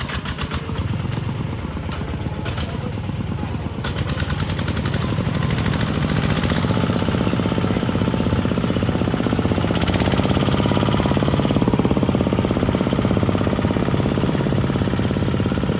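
A small engine putters steadily and rapidly.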